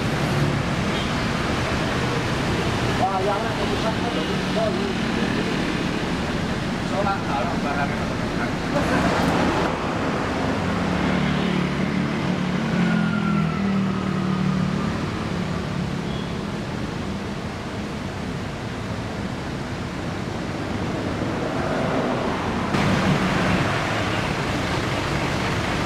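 A diesel coach engine idles.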